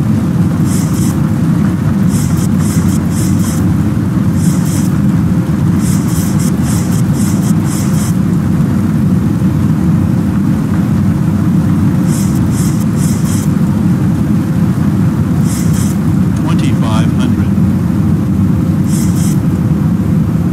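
Windshield wipers sweep back and forth across the glass.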